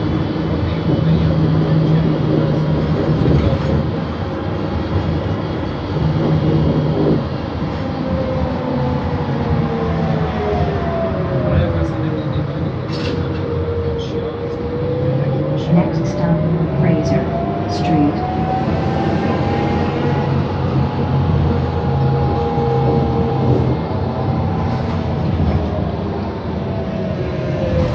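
A bus engine drones steadily, its whine rising and falling as the bus speeds up and slows down.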